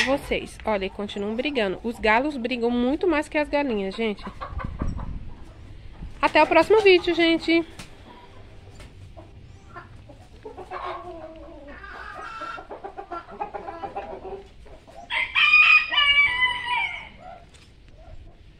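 Chickens cluck and squawk close by.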